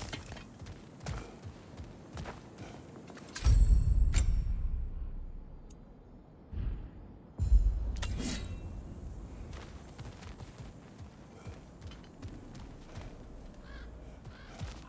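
Heavy footsteps crunch on loose gravel.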